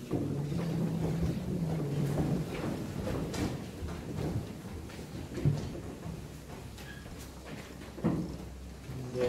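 A man chants in a low voice in a large echoing hall.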